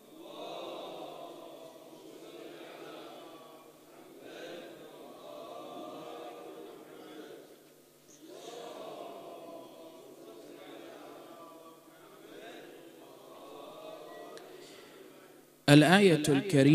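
Many men chat quietly in a murmur in an echoing hall.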